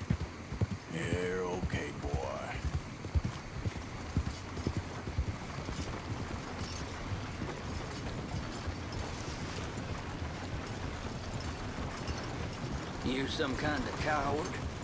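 A wooden wagon rumbles and creaks as it rolls along.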